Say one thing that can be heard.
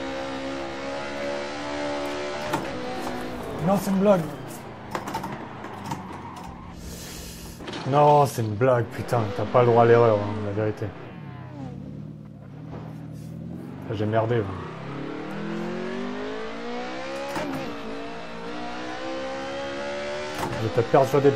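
A car engine revs hard, rising and dropping in pitch as gears change.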